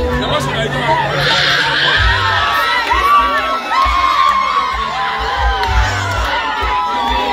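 A woman shouts loudly close by.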